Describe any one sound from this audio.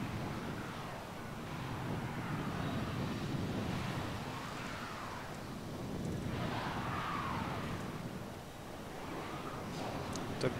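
Spaceship engines hum with a low, steady rumble and slow rising and falling whooshes.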